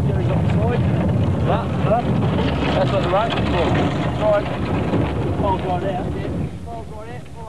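Heavy wheels roll and crunch over gravel.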